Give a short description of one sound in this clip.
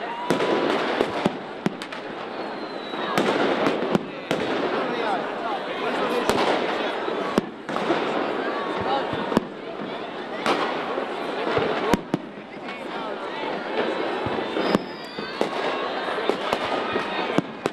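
A large crowd cheers and chatters.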